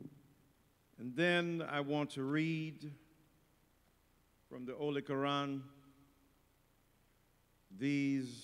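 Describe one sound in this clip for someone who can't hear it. A man speaks slowly and with feeling into a microphone.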